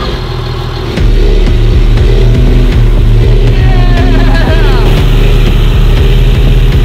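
A pickup truck's engine roars loudly.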